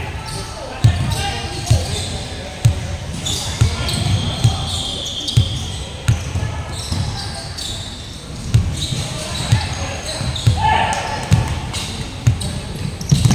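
Young people shout and call out in a large echoing hall.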